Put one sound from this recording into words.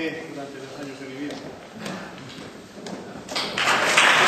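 A man speaks calmly over a loudspeaker in a large hall.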